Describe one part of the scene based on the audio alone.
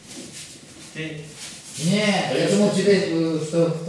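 A man speaks loudly and clearly to a group.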